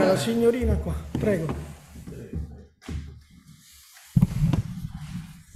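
A microphone thumps as a man handles it.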